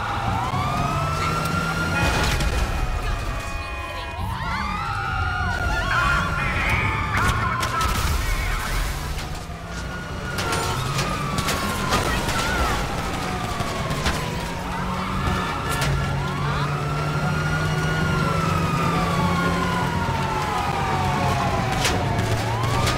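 Police sirens wail up and down.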